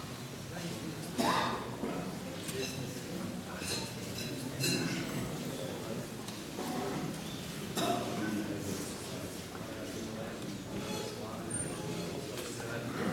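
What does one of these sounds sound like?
A crowd of men and women murmur and talk quietly in an echoing room.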